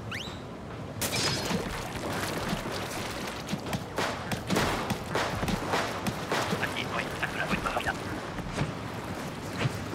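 A toy-like blaster fires repeated splattering shots.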